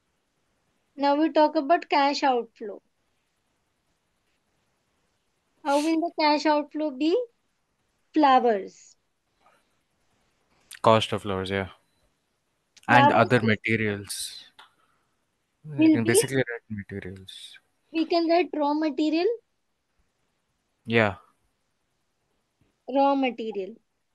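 A woman explains calmly through a microphone, pausing between phrases.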